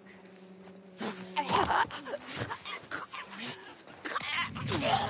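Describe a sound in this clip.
A short, violent scuffle breaks out close by, with thuds and grappling.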